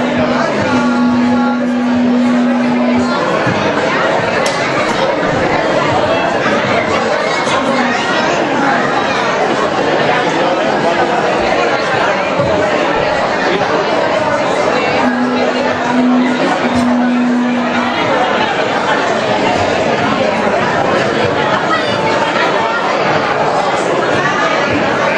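A large crowd of men and women talks and calls out loudly in an echoing hall.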